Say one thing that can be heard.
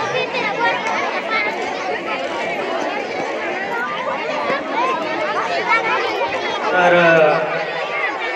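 A crowd of people chatter outdoors, several voices overlapping.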